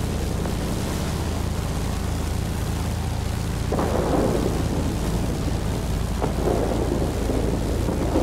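Twin propeller engines drone steadily.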